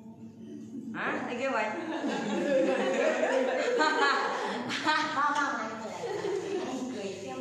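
A young woman laughs heartily nearby.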